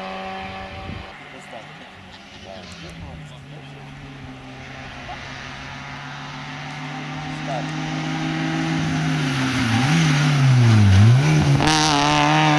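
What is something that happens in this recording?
A rally car engine roars louder as it approaches and passes close by.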